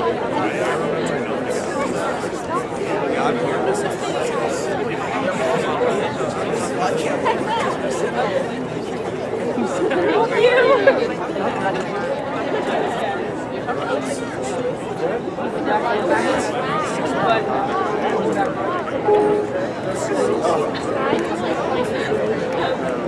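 A jazz band plays a lively tune outdoors, with saxophones and brass.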